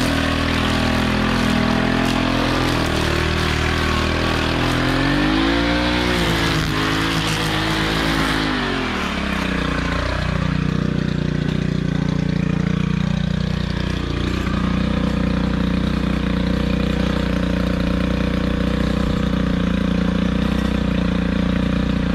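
Trimmer line whips through grass and weeds.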